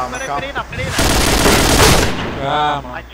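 Gunfire rattles in a rapid burst.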